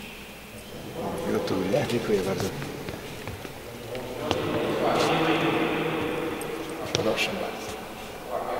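A middle-aged man speaks calmly nearby in an echoing hall.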